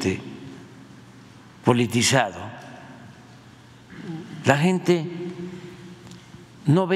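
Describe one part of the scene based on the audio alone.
An elderly man speaks slowly and deliberately into a microphone, with pauses between phrases.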